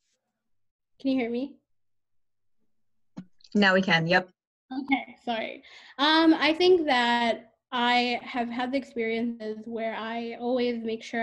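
A young woman speaks calmly into a microphone close by.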